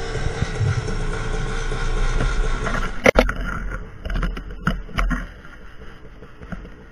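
A dirt bike engine revs and putters close by.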